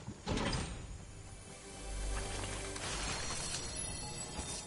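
A treasure chest opens with a shimmering chime.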